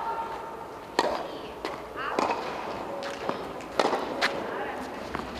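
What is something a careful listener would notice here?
A tennis racket strikes a ball with sharp pops, echoing in a large hall.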